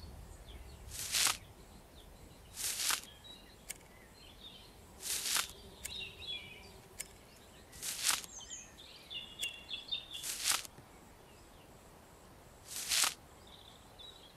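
A short airy whoosh sounds each time an item is picked up.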